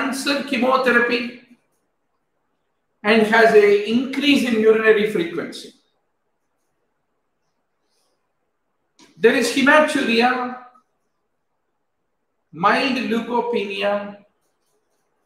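An elderly man lectures calmly over a microphone, pausing between phrases.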